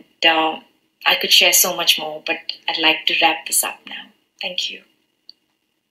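A young woman speaks warmly and gratefully, close to a microphone.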